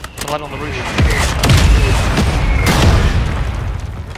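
Explosions boom with deep rumbling blasts.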